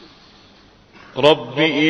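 A man chants loudly and melodically through a microphone in a large hall.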